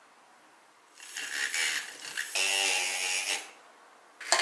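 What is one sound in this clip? A handheld milk frother whirs loudly.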